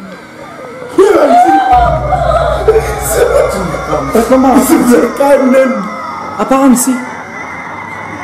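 Young men and a young woman shout and laugh excitedly.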